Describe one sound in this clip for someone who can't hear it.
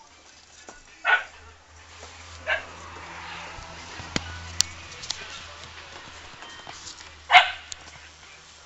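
A dog barks outdoors.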